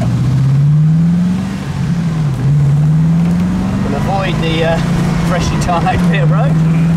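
A car engine drones steadily, its pitch slowly rising and briefly dipping.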